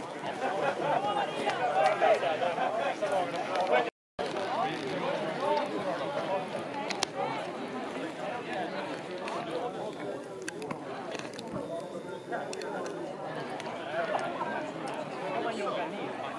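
A crowd of men and women chatter and call out nearby outdoors.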